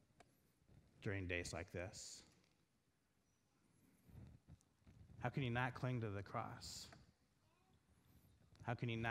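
A middle-aged man speaks with emphasis through a microphone in a large echoing room, with pauses between phrases.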